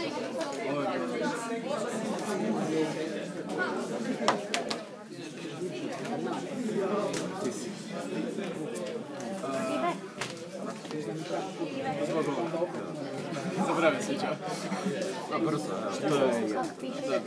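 Young men talk casually across a table nearby.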